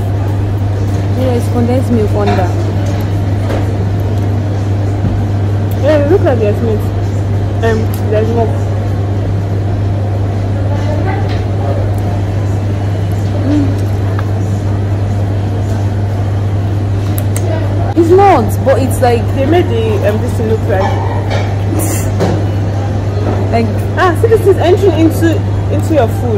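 Two young women talk and laugh close by.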